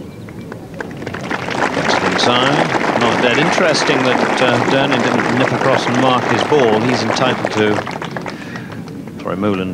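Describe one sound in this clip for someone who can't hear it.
A large crowd cheers and applauds loudly outdoors.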